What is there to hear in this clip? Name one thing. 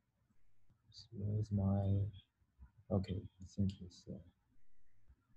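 A young man speaks calmly into a microphone, heard as if over an online call.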